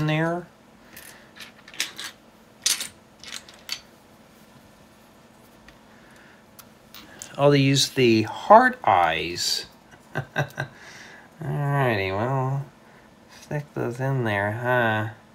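Small plastic toy bricks click and clatter.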